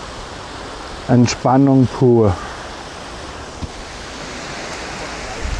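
Water splashes steadily down a small waterfall into a pond.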